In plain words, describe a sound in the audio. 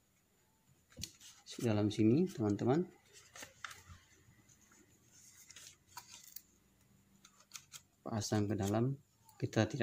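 Light plastic clicks and scrapes come as hands adjust the fittings inside a helmet.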